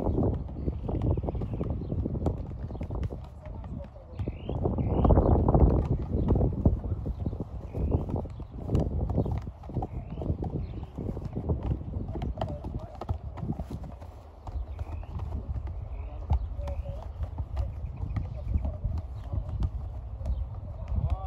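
A football is kicked and thumps back and forth between players.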